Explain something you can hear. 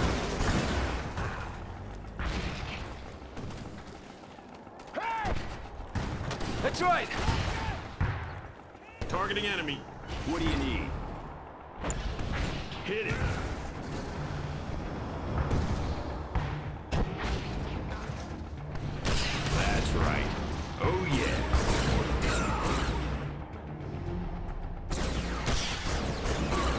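Explosions rumble with low booms.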